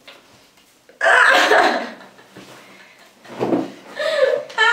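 Young women scream and laugh close by.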